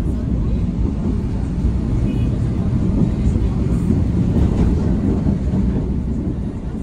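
A bus rushes past very close with a loud roar.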